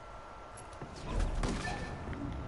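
A rifle fires a single shot.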